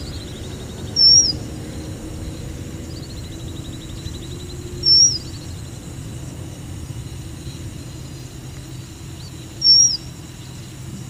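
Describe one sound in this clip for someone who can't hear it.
A small bird gives short, sharp, high chirps close by.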